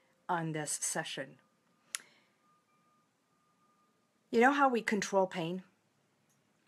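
A middle-aged woman speaks close to the microphone in a lively, expressive way.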